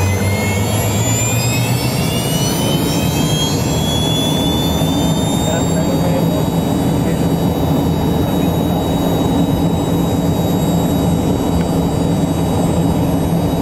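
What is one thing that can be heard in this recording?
An aircraft's wheels rumble over the runway.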